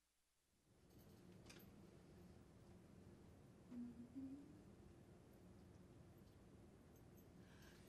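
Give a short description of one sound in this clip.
A choir of children sings softly in the distance.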